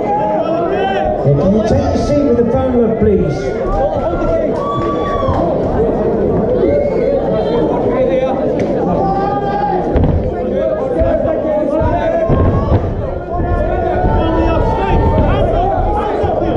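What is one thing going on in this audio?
A crowd of men and women shouts and cheers loudly in a large room.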